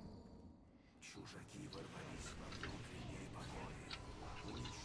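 Magic blasts crackle and whoosh in a battle.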